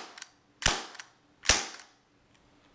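A toy pistol fires with sharp snaps.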